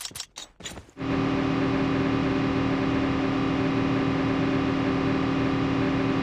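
A quad bike engine drones steadily.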